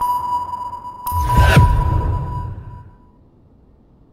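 A steady high ringing tone sounds and then fades away.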